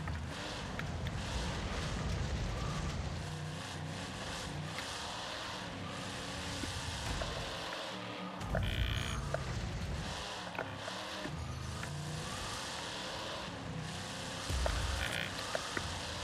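A monster truck engine roars and revs steadily.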